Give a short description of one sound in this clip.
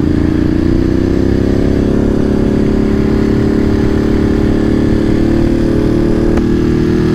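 A motorcycle engine hums steadily, its pitch rising slowly as it speeds up.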